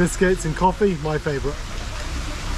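A man speaks animatedly close to the microphone.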